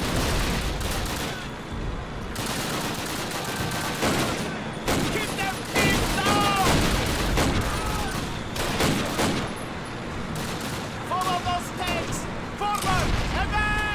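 Gunfire rattles in rapid bursts with sharp bangs.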